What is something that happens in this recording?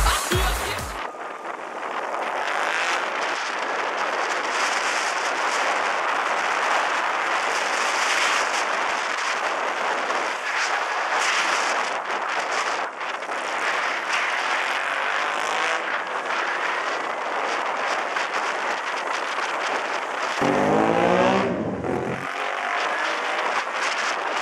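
Wind roars against the microphone while riding.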